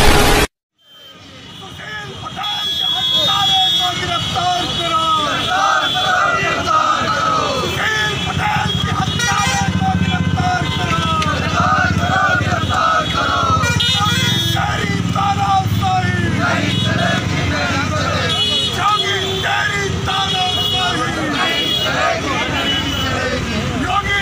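A crowd of men chants slogans together outdoors.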